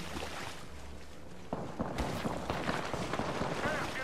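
Water splashes underfoot.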